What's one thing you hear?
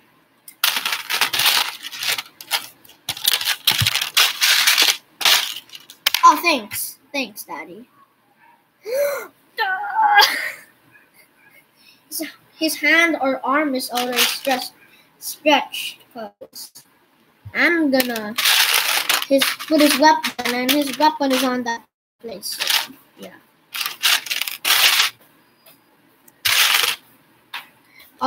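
Plastic toy bricks rattle and rustle in a bag.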